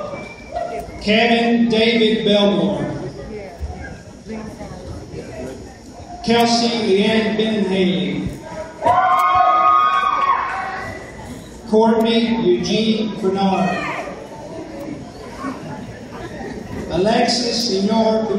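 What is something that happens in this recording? A woman reads out over a loudspeaker, echoing through a large hall.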